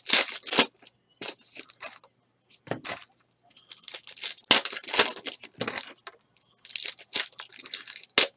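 A foil card pack crinkles as hands tear it open.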